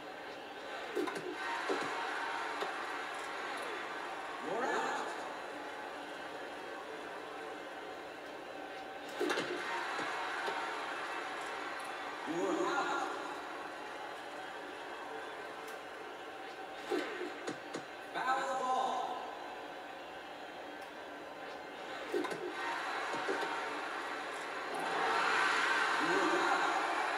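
A stadium crowd cheers and roars, heard through a television speaker.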